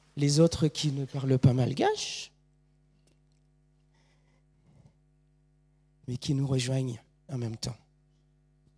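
A man speaks loudly through a microphone in a large room.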